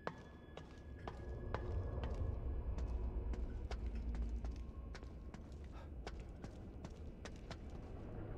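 Footsteps clank on a metal grate floor.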